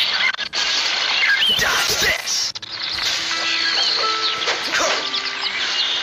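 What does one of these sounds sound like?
A sword swishes and strikes in quick bursts.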